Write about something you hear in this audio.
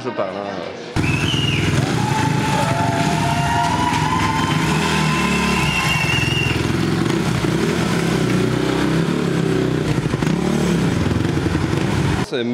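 A motorcycle engine revs loudly and roars steadily.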